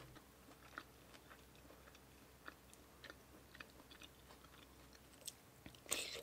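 Fingers squish through wet, saucy food close by.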